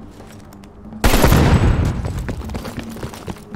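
Automatic rifle fire rattles loudly close by.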